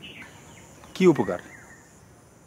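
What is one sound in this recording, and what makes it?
A man speaks sharply up close.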